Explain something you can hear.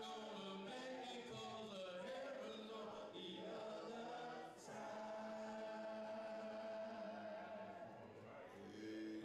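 A man sings loudly through a microphone and loudspeakers.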